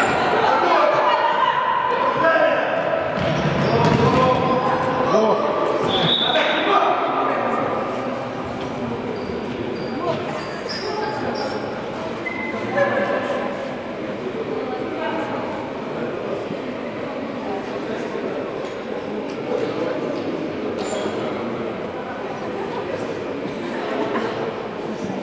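A ball thuds on a wooden floor.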